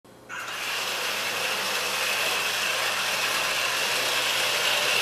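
A small robot's motor whirs steadily as it rolls across a wooden floor.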